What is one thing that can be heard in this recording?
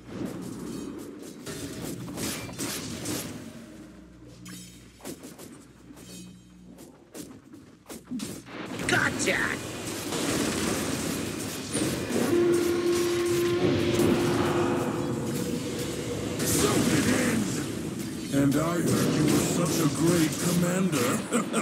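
Video game combat effects clash, whoosh and crackle.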